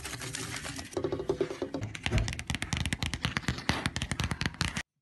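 Fingernails tap quickly on a smooth hard surface.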